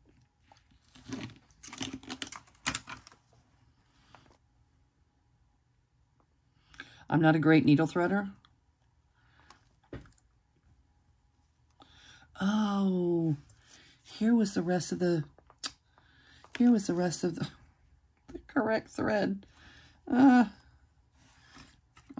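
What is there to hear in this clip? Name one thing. Paper rustles softly as hands handle a small booklet.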